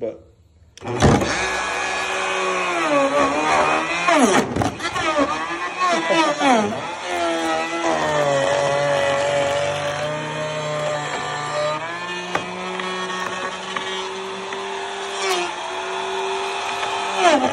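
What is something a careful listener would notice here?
A router whines loudly, its pitch shifting as it cuts into wood.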